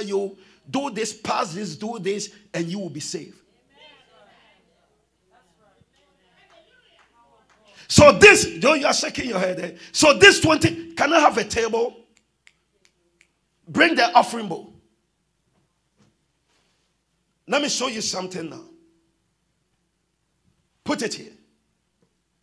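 A man preaches with animation through a microphone, in bursts with pauses.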